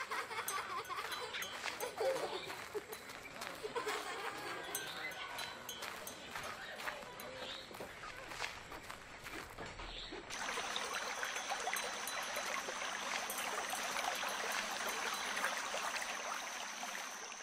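Footsteps tread softly on the ground.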